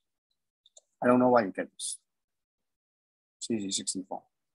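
A man speaks calmly through a microphone, in short phrases.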